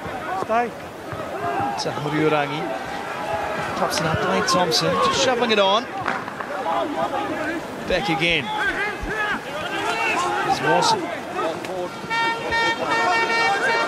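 A crowd murmurs and cheers in an open stadium.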